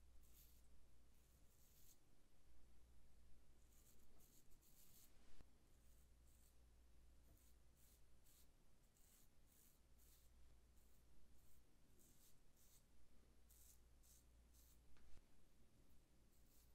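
A razor scrapes in short strokes across a shaved scalp, close by.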